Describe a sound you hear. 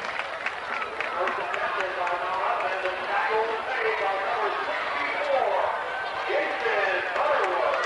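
Young men talk and shout to each other outdoors, heard from a distance.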